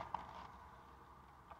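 Foil wrapping crinkles briefly.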